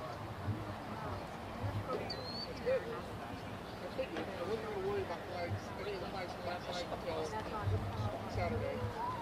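A distant crowd of spectators chatters and calls out outdoors.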